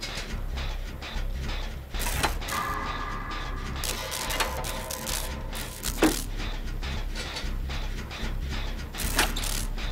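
A machine clatters and rattles as it is being repaired.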